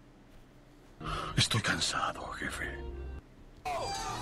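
A young man shouts loudly in excitement.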